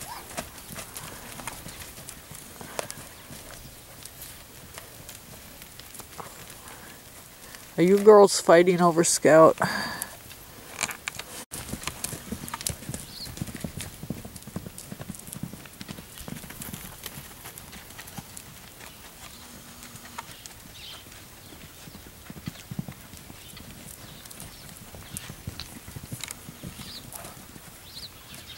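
Horses' hooves thud softly on dirt.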